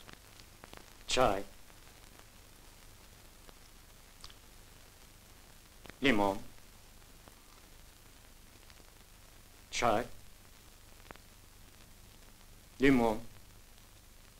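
A man speaks in short, brief phrases, with pauses between them.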